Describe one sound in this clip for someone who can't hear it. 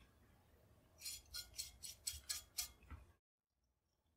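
A metal die rattles quickly as it is spun off a rod.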